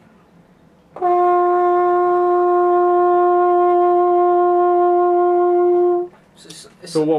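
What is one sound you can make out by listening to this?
A French horn plays a single long, steady note.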